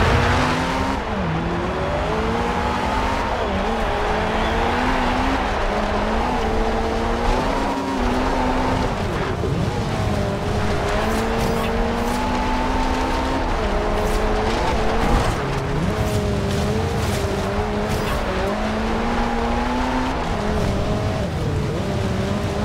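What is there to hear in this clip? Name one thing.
A car engine revs high and shifts gears repeatedly.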